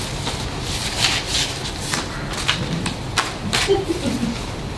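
Paper rustles on a table.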